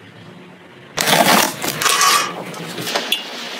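A blade slits packing tape on a cardboard box.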